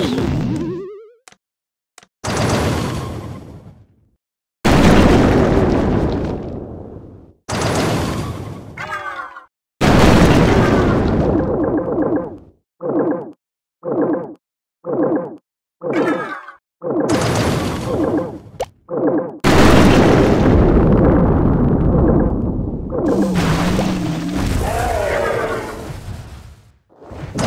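Fiery blasts and crashes boom in bursts during a battle.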